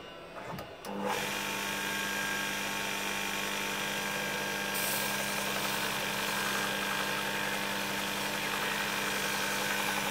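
A belt sander motor starts up and runs with a steady whirring hum.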